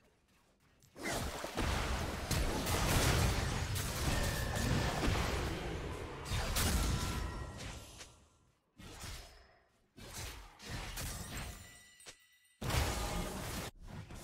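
Magical spells whoosh and blast in a fight.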